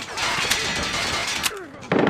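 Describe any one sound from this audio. A character reloads a rifle with a metallic clatter.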